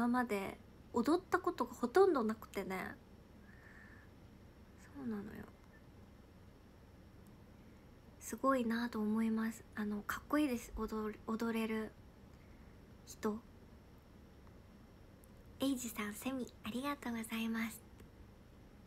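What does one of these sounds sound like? A young woman talks calmly and closely into a microphone, in short bursts with pauses.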